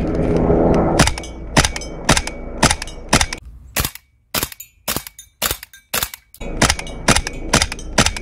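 An airsoft rifle fires single shots with sharp snapping cracks, at a steady pace.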